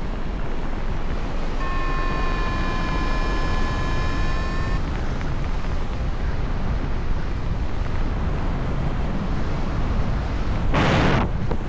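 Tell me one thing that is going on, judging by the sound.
Wind rushes loudly past, outdoors high in the air.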